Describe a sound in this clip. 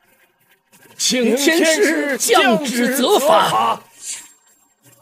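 A middle-aged man pleads loudly and emotionally.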